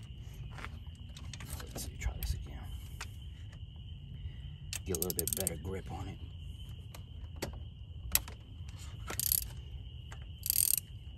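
Hands rub and knock against plastic engine parts with small clicks and rustles.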